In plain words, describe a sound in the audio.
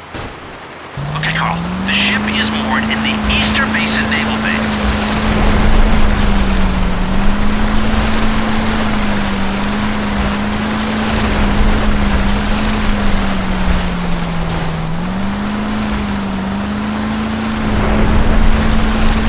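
A motorboat engine hums steadily, rising and falling slightly in pitch.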